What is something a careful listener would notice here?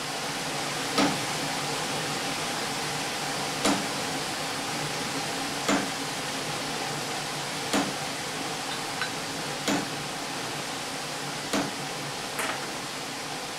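A wooden dowel knocks sharply against a hard block, again and again.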